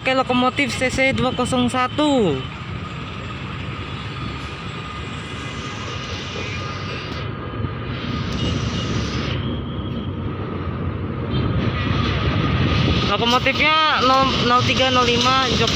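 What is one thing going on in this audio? A diesel locomotive engine rumbles as the train rolls closer.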